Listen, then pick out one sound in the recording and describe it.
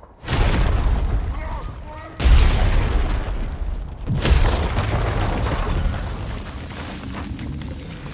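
Chunks of rubble crash and scatter.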